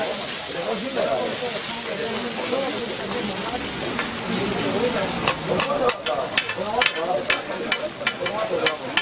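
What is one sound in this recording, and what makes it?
Batter sizzles steadily on a hot griddle.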